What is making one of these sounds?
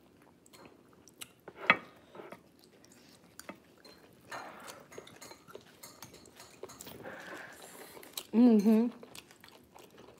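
A young woman chews and smacks her lips while eating.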